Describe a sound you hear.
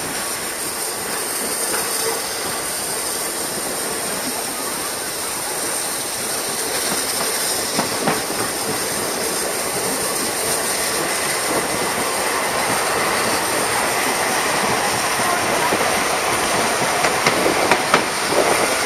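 Train carriages rattle and clatter along the track close by.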